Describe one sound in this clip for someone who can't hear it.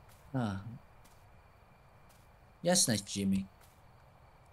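A young man speaks briefly into a microphone, with animation.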